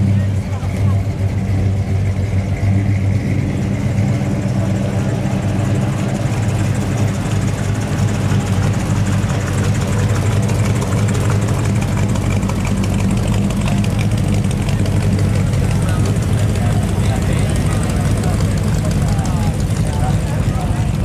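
Voices of a crowd murmur outdoors.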